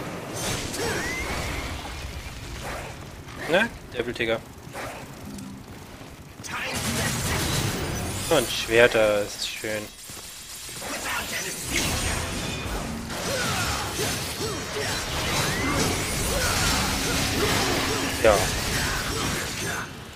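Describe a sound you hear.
Explosions and magic blasts boom.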